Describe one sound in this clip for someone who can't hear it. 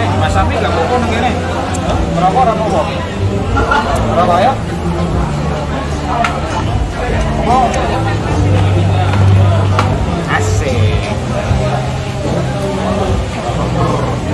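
A man laughs and talks close by.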